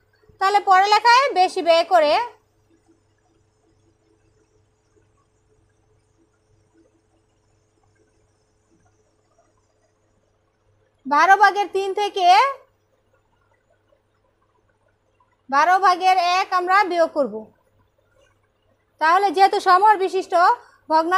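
A woman speaks in short, lively bursts close by, with pauses between.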